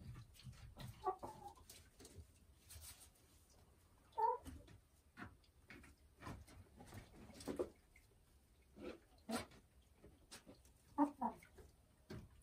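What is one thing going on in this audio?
A hen clucks softly and croaks close by.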